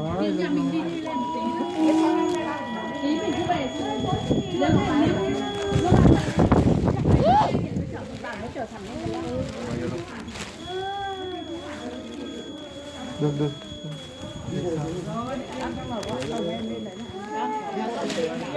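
Men and women chatter loudly close by.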